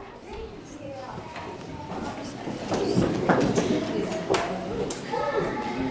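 Adults chatter and murmur nearby.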